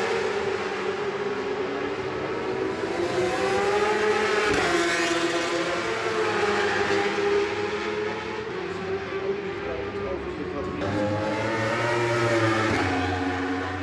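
Racing motorcycle engines whine loudly as bikes speed past, rising and falling in pitch.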